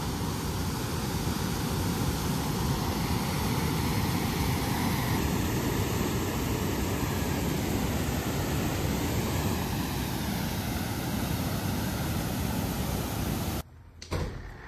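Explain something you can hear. A waterfall roars loudly and steadily nearby.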